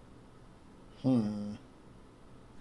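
A man says a few words briefly and close to a microphone.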